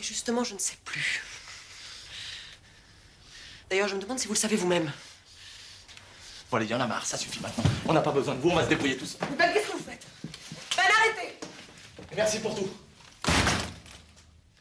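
A woman speaks with agitation, close by.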